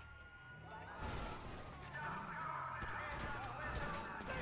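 A car crashes hard into another car with a loud bang.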